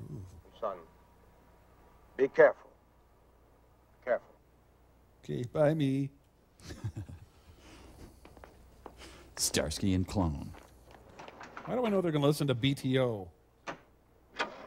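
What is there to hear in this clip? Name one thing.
Men speak in short, lively bursts, heard through a slightly muffled old recording.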